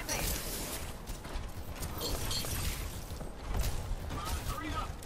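Heavy mechanical footsteps clank as a robot walks.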